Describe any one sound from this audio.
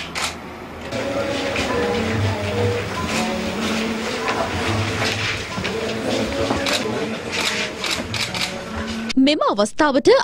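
A crowd of men chatter and murmur close by.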